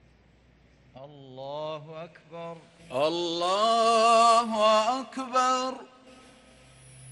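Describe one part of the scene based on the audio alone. A man chants a long, drawn-out prayer call through loudspeakers in a large, echoing open space.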